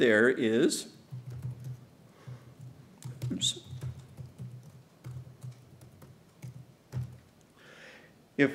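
Keys click softly on a laptop keyboard.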